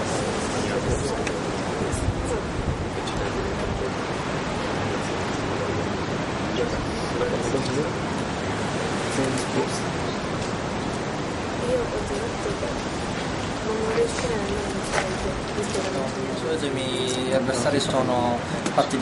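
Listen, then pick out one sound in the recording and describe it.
A noisy crowd of young people chatters outdoors.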